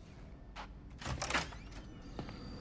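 A heavy door swings open with a loud rush.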